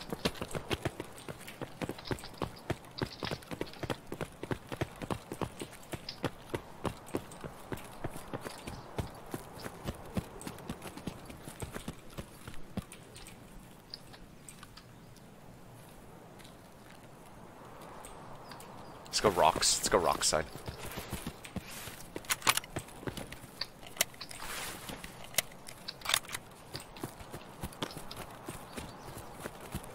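Footsteps crunch quickly over gravel and grass.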